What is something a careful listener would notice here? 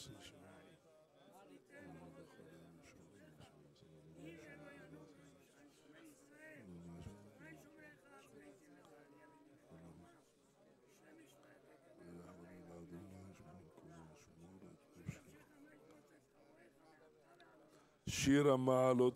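An elderly man speaks quietly and calmly.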